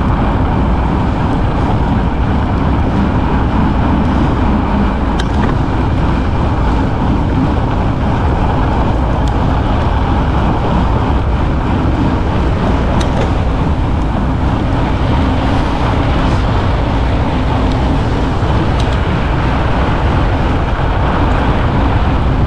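Wind buffets loudly and steadily past a moving bicycle.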